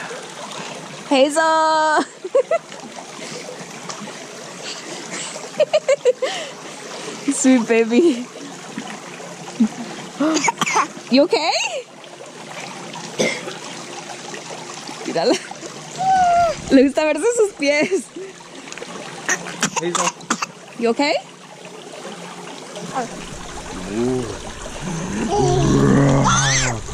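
A man talks playfully up close to a toddler.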